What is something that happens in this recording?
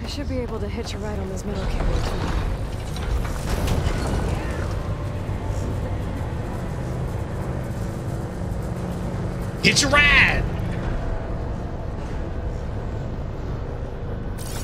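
Large machines hum and whir with a low steady rumble.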